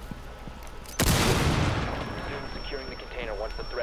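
A loud blast bursts and then rumbles away.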